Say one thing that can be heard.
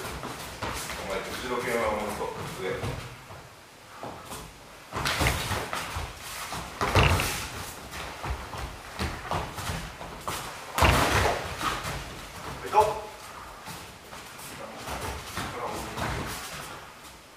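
Bare feet shuffle and thump on a mat.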